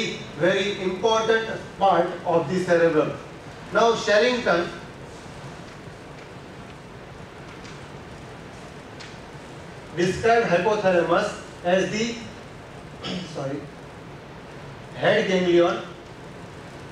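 A man lectures with animation, heard through a clip-on microphone.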